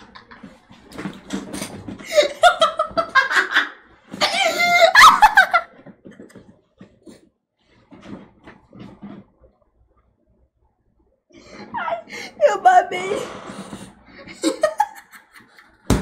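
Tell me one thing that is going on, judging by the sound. A young woman talks and laughs close to a microphone.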